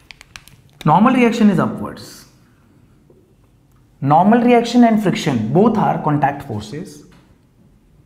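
A young man lectures, speaking close up.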